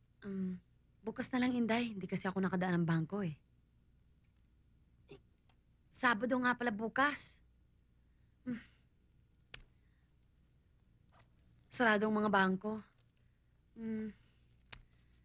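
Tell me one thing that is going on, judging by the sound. An older woman speaks in a worried tone, close by.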